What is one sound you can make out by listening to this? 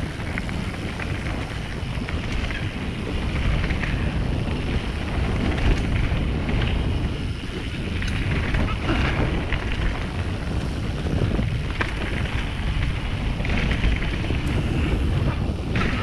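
Wind rushes and rumbles past close by.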